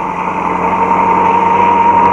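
A car drives along a road.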